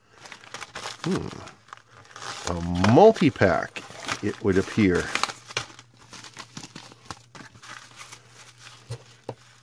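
A paper packet crinkles and rustles as it is torn open.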